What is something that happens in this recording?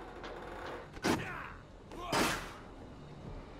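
A metal grate bangs loudly as it is kicked open.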